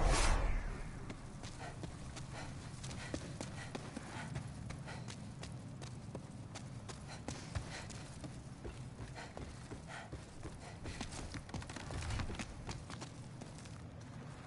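Footsteps tread on stone, soft and steady.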